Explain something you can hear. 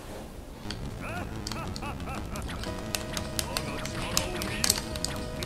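Electronic game sounds of a fight play.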